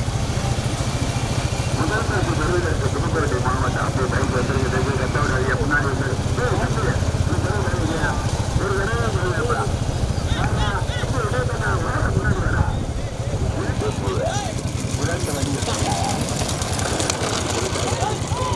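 Bullocks' hooves clatter on asphalt as they trot.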